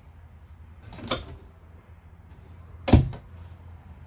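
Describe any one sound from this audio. A shower door slides and shuts with a thud.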